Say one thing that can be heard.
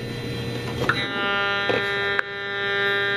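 An electronic meter sounds a steady high beeping tone.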